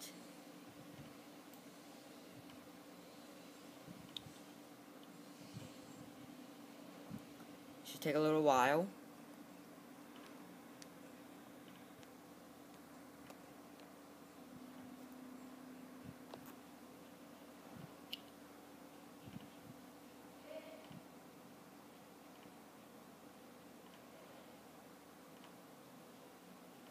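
A laptop fan hums softly and steadily.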